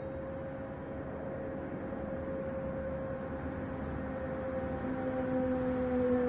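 A race car engine drones steadily, growing louder as the car approaches.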